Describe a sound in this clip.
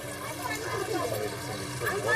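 A crowd of women chatter nearby.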